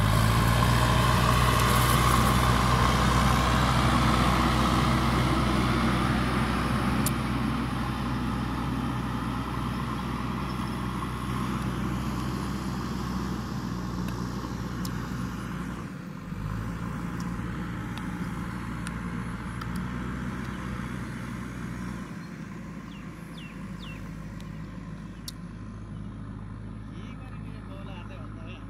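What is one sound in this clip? A heavy diesel engine rumbles close by, then slowly fades as the machine drives away.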